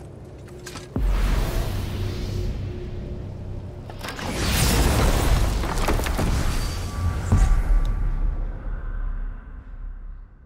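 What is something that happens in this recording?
A deep magical whoosh roars up suddenly and swells, then fades away.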